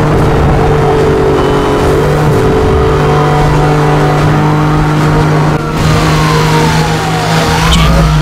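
A sports car engine roars steadily at high speed.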